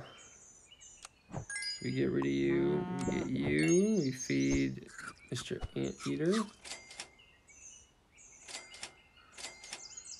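Short game chimes and pops ring out.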